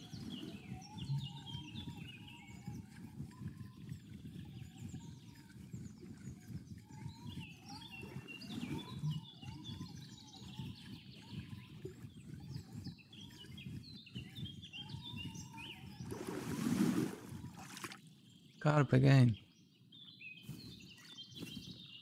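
Water laps gently at the shore.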